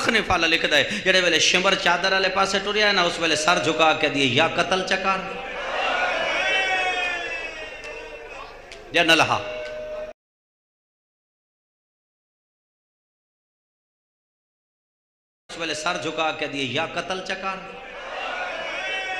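A man speaks passionately into a microphone, sometimes chanting.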